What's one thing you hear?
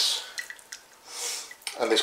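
Liquid drips and trickles from a mesh bag into a pot.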